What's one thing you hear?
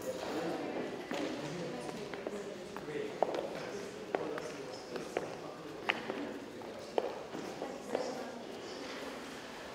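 A crowd murmurs in an echoing hall.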